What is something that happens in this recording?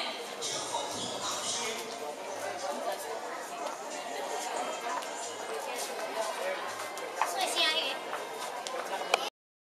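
A crowd of women chatters nearby.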